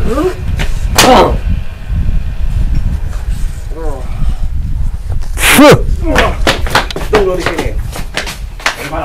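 Men shout nearby.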